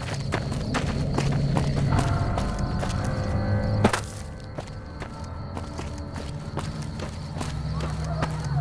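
Footsteps crunch steadily on loose gravel.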